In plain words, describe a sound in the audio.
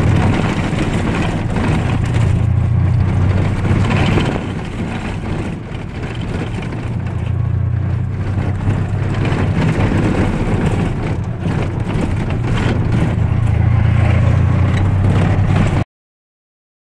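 A car engine hums steadily close by.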